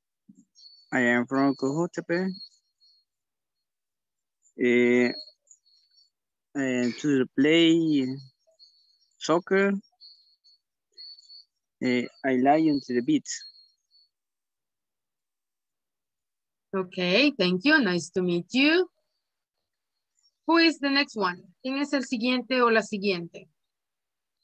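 A woman speaks calmly over an online call, in short bursts with pauses.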